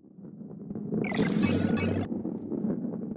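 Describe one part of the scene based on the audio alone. A bright chime rings as a coin is collected.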